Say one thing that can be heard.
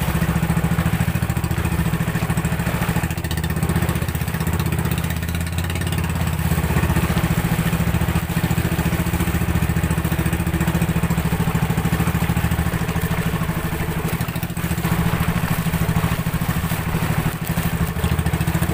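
A boat engine drones steadily and loudly.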